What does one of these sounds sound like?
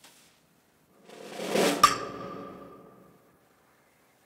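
A metal gate swings and clangs shut with a ringing echo.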